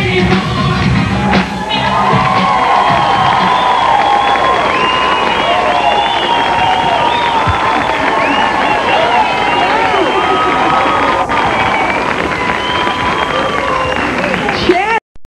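A large crowd cheers, whistles and screams loudly.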